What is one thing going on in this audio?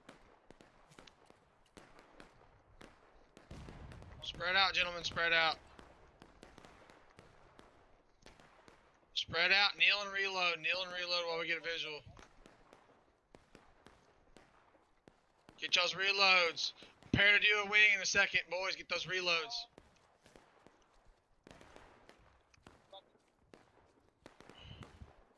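Footsteps tread on a dirt path and through dry grass.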